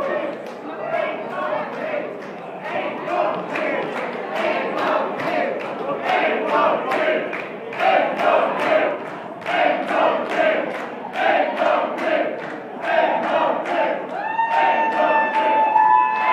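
Drums pound a fast, steady beat.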